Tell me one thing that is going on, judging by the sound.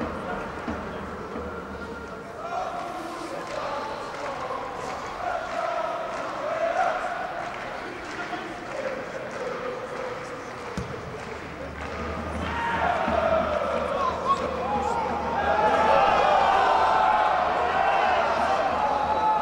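Spectators talk and call out nearby in a large echoing stadium.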